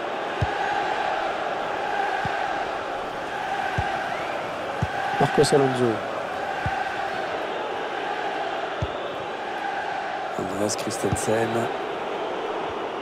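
A large crowd roars and chants steadily in a stadium.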